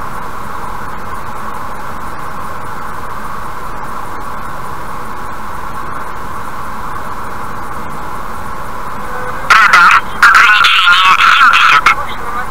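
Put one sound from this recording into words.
A car drives along a highway with a steady hum of tyres and engine.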